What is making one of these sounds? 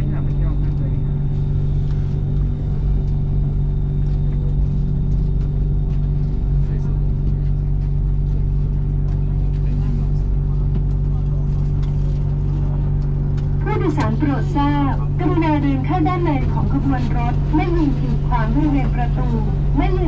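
A train hums and rumbles steadily as it slows to a stop.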